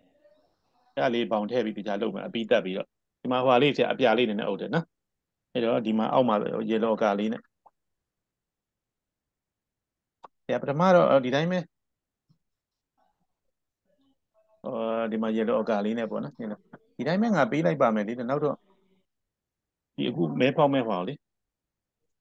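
A man talks calmly through an online call.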